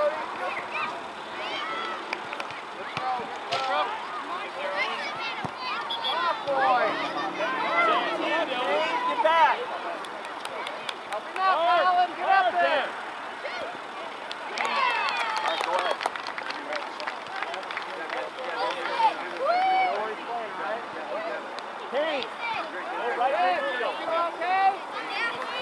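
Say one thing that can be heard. Spectators cheer and shout from the sidelines outdoors.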